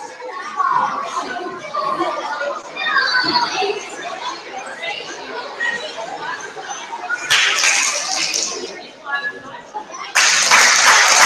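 A young woman speaks aloud in a large echoing hall.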